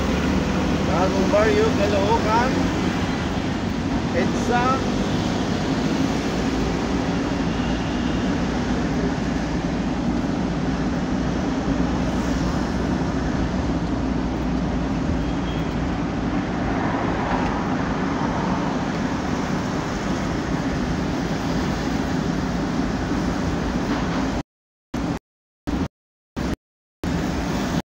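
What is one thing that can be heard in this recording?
A vehicle engine hums steadily.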